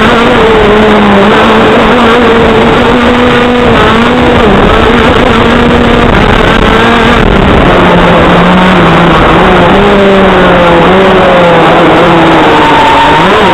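A motorcycle engine drones steadily, its pitch rising and dropping as it changes speed.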